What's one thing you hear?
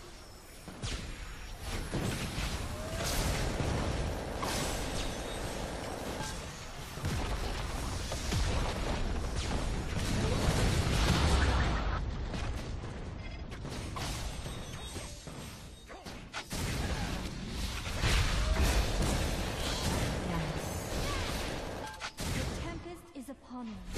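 Spell effects crackle and boom in a fast game battle.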